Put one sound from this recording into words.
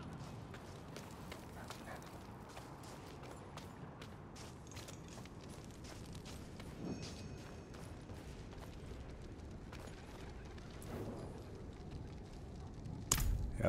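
Footsteps crunch steadily over snow and stone.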